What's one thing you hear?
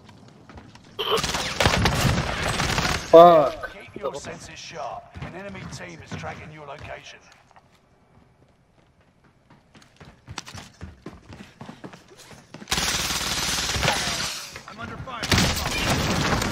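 Rapid gunfire rattles loudly in a video game.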